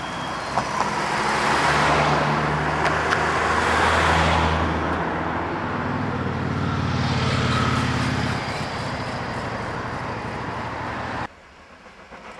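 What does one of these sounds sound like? A steam locomotive's exhaust roars and hisses.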